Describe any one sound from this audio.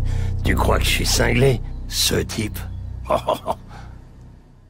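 An elderly man speaks slowly in a low, rough voice.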